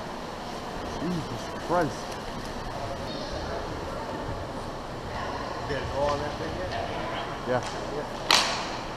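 Young men call out to each other in a large echoing rink.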